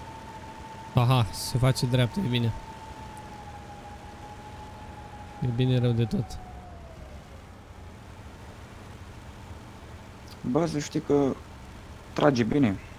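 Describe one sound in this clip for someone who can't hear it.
A young man talks into a close microphone in short bursts.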